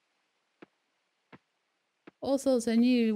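Footsteps crunch softly in snow.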